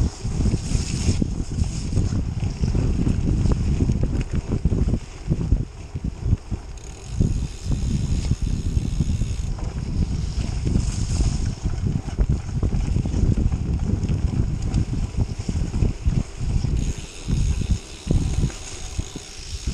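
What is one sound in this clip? Bicycle tyres rumble and crunch over a bumpy dirt trail.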